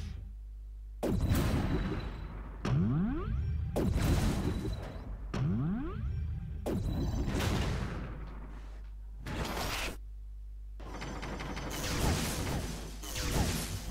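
Guns fire in rapid bursts.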